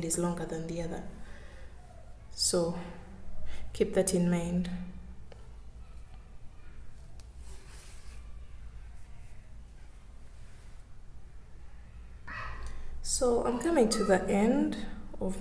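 Soft yarn rustles as hands handle a piece of crocheted fabric.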